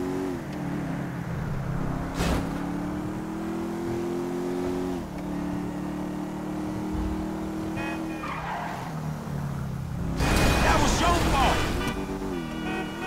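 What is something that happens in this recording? A car engine hums steadily, rising and falling in pitch as it changes gear.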